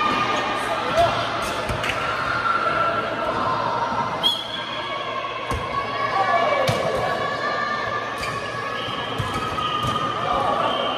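A volleyball is struck and thuds in a large echoing hall.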